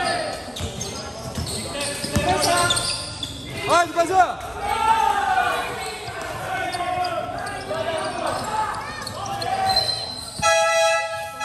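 Young men shout and call out to one another across the court.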